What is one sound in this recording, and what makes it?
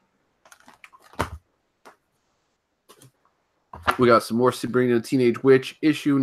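Comic books rustle as they are handled.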